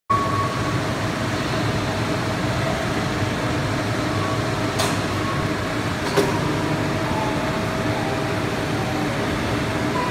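Machinery hums steadily in a large room.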